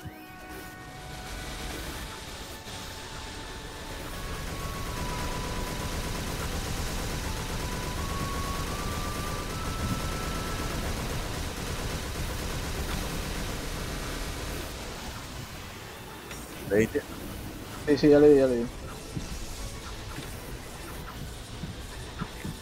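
Magic blasts boom and crackle in quick succession.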